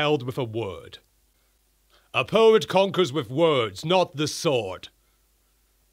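A man speaks animatedly into a close microphone.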